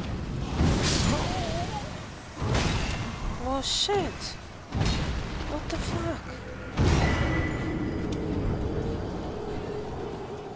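A huge monster growls and roars.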